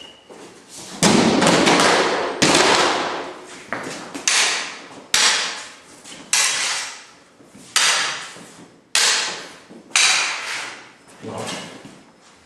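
Steel swords clash and ring.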